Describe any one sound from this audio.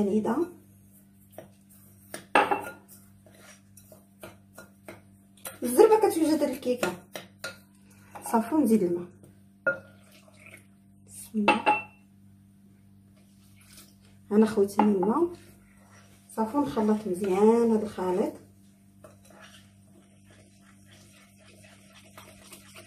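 A spoon scrapes and clinks against a glass bowl.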